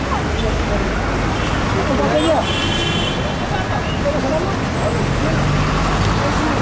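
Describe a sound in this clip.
Many people's voices chatter nearby on a busy street.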